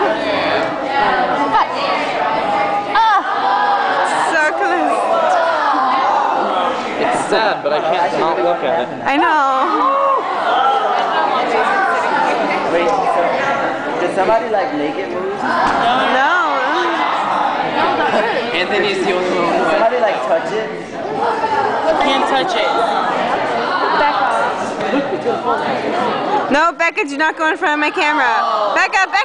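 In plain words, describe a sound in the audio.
A youth choir sings together.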